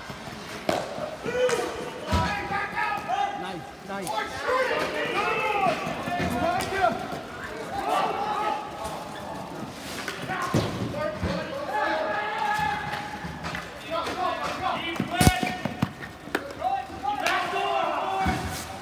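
Inline skate wheels roll and scrape on the rink floor.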